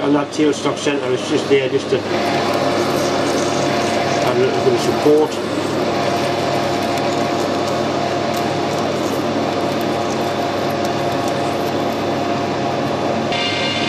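A hand-held tool scrapes against spinning metal.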